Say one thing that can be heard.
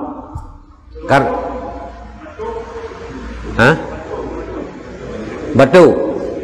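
A middle-aged man speaks with animation into a microphone, in a room with a slight echo.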